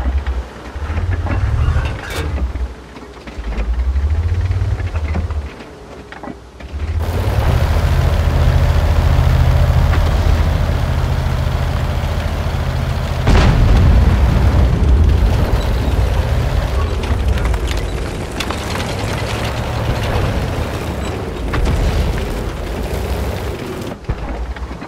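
A tank engine rumbles low and steady, rising as the tank drives.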